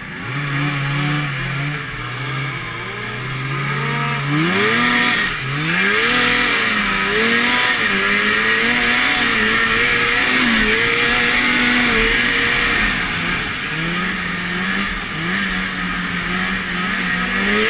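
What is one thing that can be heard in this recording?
A snowmobile engine roars up close, revving up and down.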